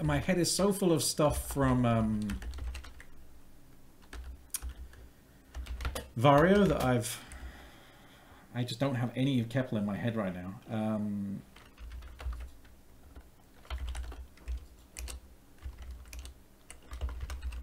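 Keys clatter on a keyboard.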